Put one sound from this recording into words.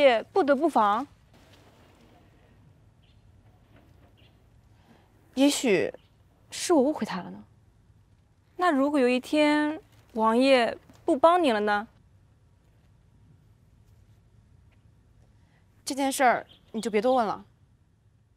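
A young woman speaks softly and sadly, close by.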